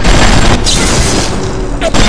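Electricity crackles and zaps.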